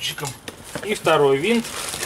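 A hand rummages in a cardboard box.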